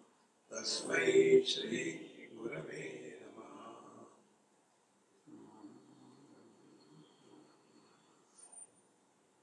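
An elderly man speaks calmly into a close microphone, reading aloud.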